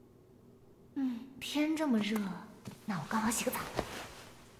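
A young woman speaks softly and playfully.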